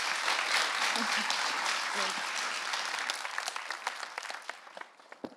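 A large audience applauds, then the clapping thins out to scattered claps and fades.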